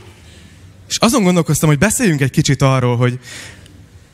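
A young man speaks calmly into a microphone, heard through loudspeakers.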